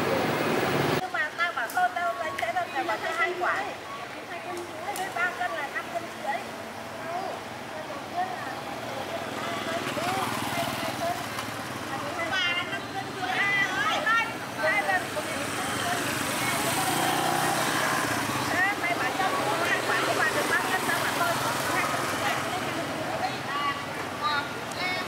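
A middle-aged woman talks casually nearby.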